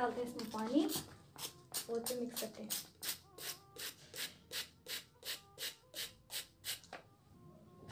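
A spray bottle squirts in quick, even bursts.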